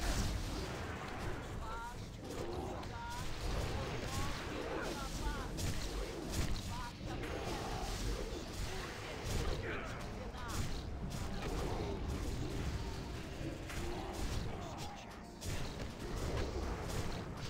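Game spells crackle and boom in a fast fight.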